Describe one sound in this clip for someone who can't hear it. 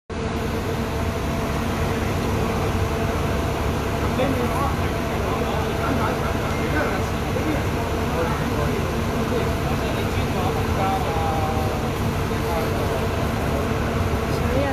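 A bus engine idles close by with a steady low rumble.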